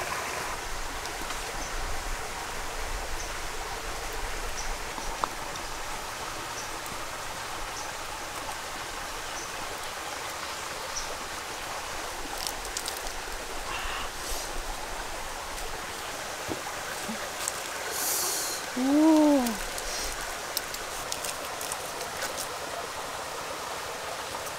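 A pot of broth bubbles softly.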